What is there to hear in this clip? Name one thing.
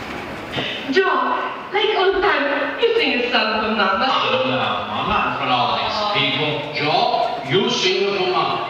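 A man speaks with expression over a loudspeaker in a large hall.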